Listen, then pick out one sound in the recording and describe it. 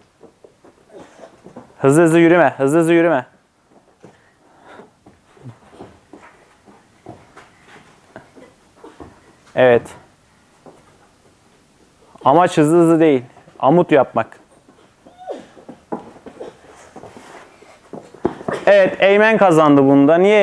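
Children's hands and feet thump softly on a padded mat.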